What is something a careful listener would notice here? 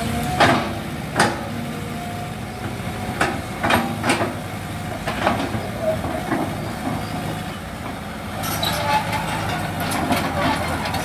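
An excavator bucket scrapes and knocks against the ground.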